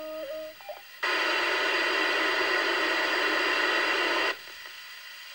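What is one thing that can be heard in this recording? A radio scanner hisses with a loud burst of static.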